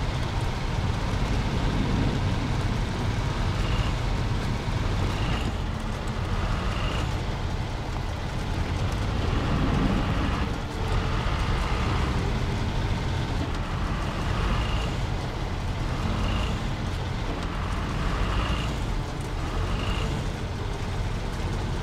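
A heavy truck engine rumbles steadily while driving.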